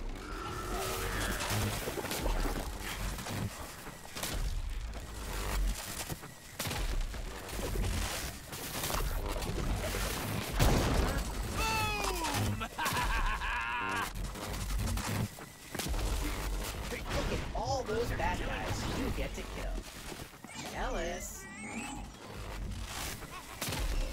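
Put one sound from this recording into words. Electric weapon blasts crackle and zap rapidly.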